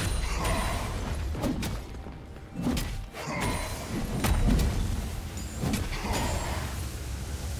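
Magic spells whoosh and crackle in a chaotic battle.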